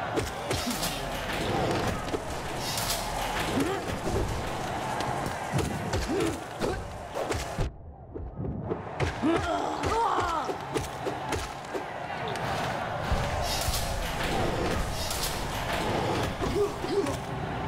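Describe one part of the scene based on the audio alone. Sharp slashing and bursting sound effects ring out in a fast-paced game.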